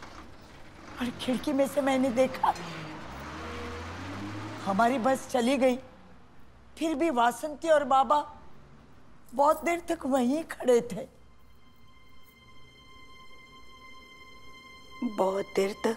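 An elderly woman speaks with feeling, close by.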